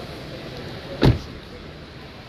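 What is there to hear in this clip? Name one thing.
A car door thuds shut.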